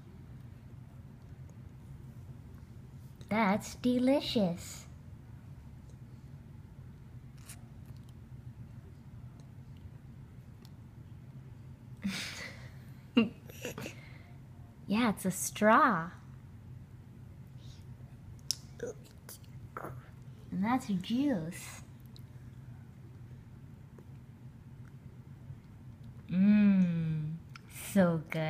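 A small child slurps a drink through a straw.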